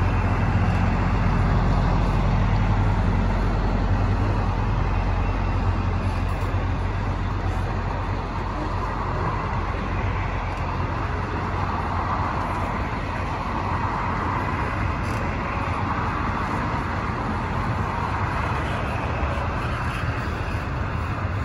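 A long freight train rumbles past nearby.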